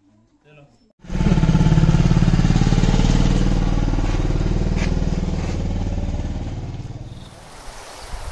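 A motorcycle engine idles and revs.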